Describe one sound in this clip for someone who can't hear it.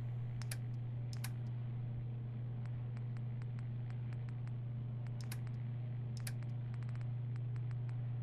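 Soft menu clicks tick quickly as a selection scrolls through a list.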